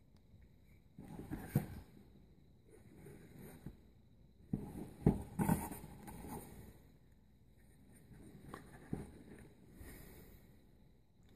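A metal pistol is handled, thumping and scraping softly against a foam-lined case.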